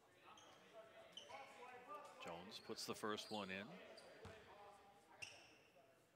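Sneakers squeak sharply.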